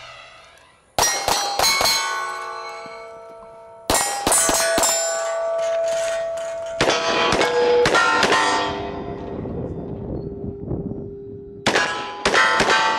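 A pistol fires rapid shots outdoors, each shot ringing out.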